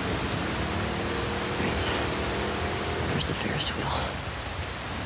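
Water splashes and churns behind a moving boat.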